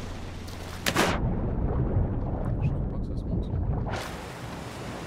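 Sounds turn muffled, as if heard underwater.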